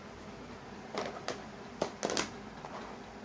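Marker pens clack against each other on a table.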